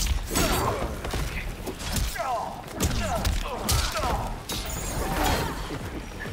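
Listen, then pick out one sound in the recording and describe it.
Fire bursts with a roaring whoosh.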